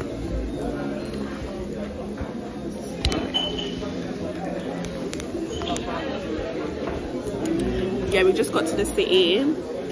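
A crowd murmurs in a busy room.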